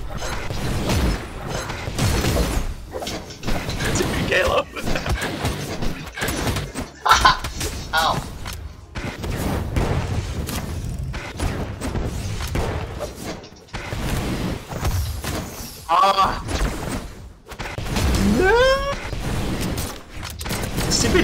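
Fighting game hits and blasts crack and thump in quick bursts.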